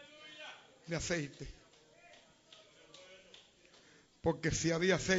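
An elderly man preaches with animation through a microphone, in bursts with pauses.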